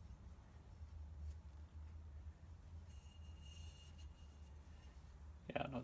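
A cloth rubs against metal.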